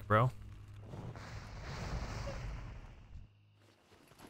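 A fiery spell bursts with a roaring whoosh.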